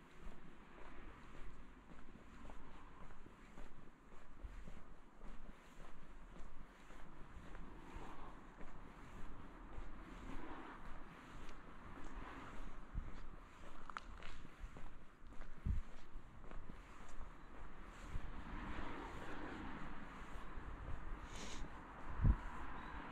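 Footsteps tread steadily on a paved lane.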